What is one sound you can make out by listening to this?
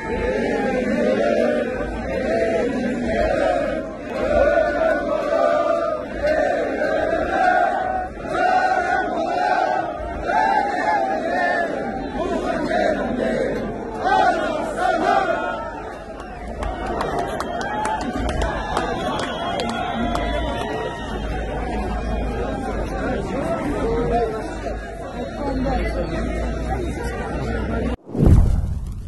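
A large crowd sings together loudly outdoors.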